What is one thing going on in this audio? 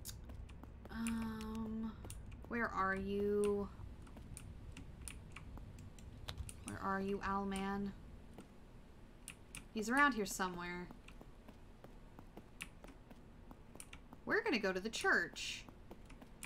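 A young woman speaks expressively into a microphone, in short bursts.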